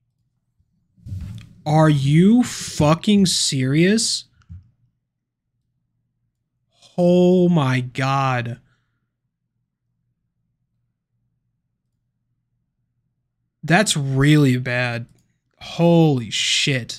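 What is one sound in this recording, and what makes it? A man speaks casually into a close microphone, in short bursts with pauses.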